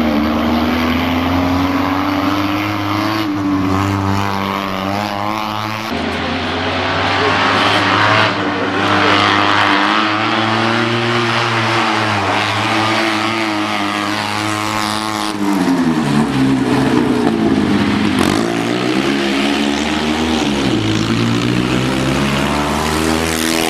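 A small car engine revs hard close by, its pitch rising and falling.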